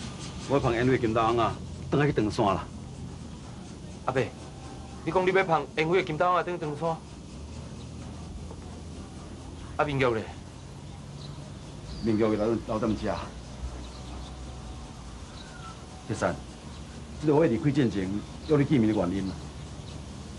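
An older man speaks firmly, close by.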